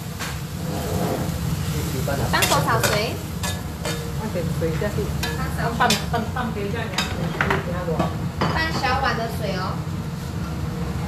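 A metal spatula scrapes and clinks against a pan.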